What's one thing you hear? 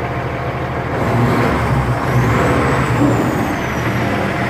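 A Cummins ISX diesel semi truck engine revs briefly as the accelerator is pressed.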